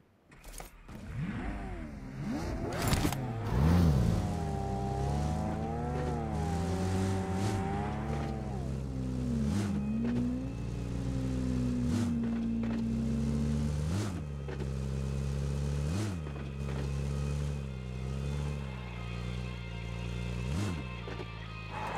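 A vehicle engine revs and roars steadily.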